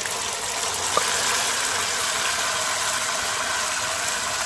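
Curry splashes into a hot pan and sizzles loudly.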